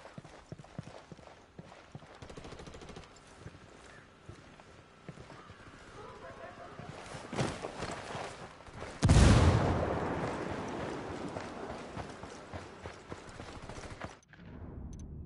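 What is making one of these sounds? Footsteps scrape and crunch on rock and dirt.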